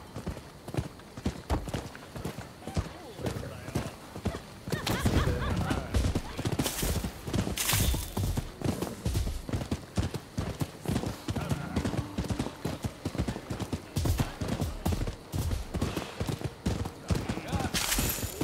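Horse hooves thud in a quick, steady gallop on a dirt path.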